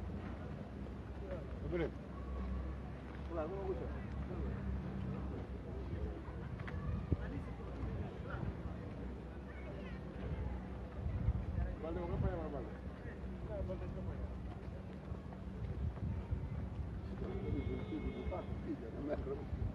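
Men talk nearby outdoors in a low murmur.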